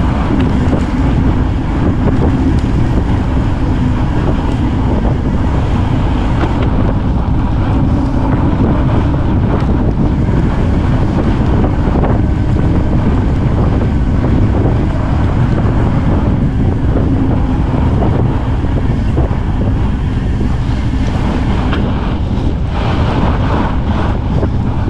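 Fat bike tyres crunch over packed snow.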